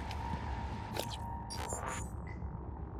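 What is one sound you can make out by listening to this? A menu click chimes sharply.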